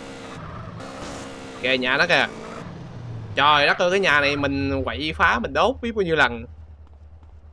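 A motorcycle engine revs and hums.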